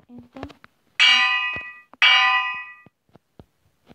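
An anvil lands twice with a ringing metallic clang.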